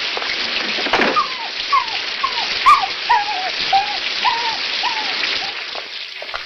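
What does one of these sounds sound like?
A dog whines.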